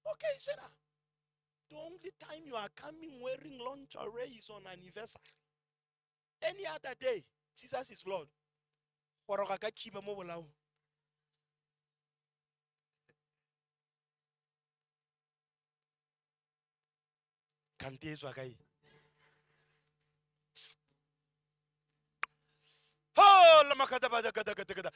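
A man preaches with animation into a microphone, with long pauses.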